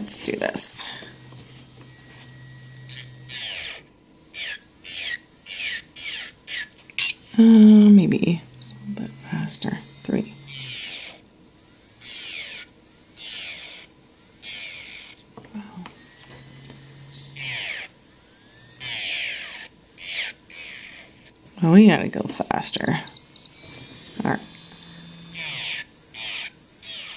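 A small electric drill whirs as it grinds a fingernail in short bursts.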